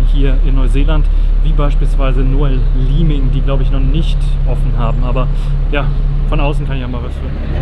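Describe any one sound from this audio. A young man talks up close into the microphone, with animation.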